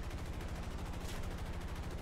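Machine guns fire a short burst.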